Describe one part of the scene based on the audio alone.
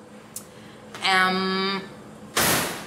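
A young woman hums with closed lips.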